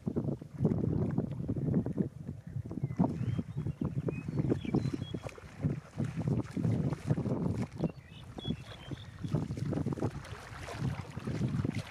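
A hooked fish splashes and thrashes in shallow water.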